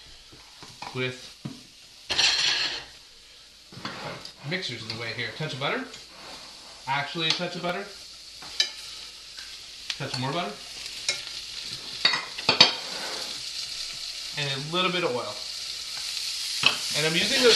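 Food sizzles in a hot pan, growing louder.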